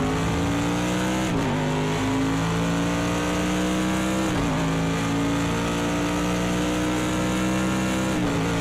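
A racing car engine roars at high revs, rising in pitch and dropping briefly at each gear change.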